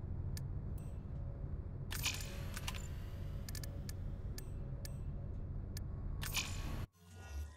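Menu buttons click sharply.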